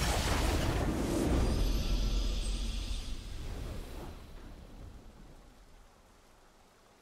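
A triumphant fanfare swells, then fades away.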